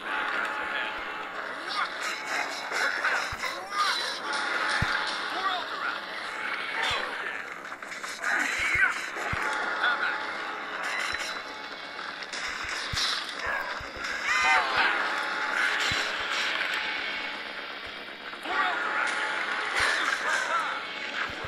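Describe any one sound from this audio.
Video game combat effects clash and crackle.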